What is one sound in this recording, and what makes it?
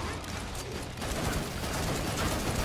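Gunshots fire in quick bursts.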